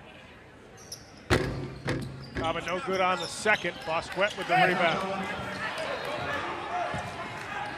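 Sneakers squeak on a wooden court as players run.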